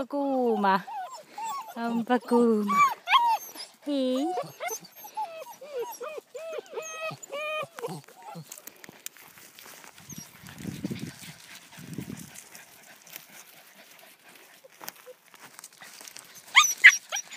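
Puppies whine and yelp close by in high, wavering cries.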